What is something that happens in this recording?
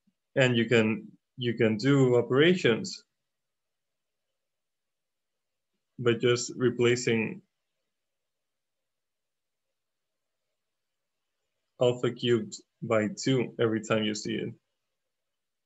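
A man explains calmly, heard close through a microphone, in short phrases with pauses.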